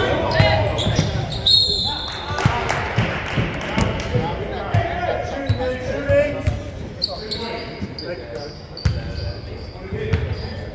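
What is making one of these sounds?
A basketball thuds against the floor.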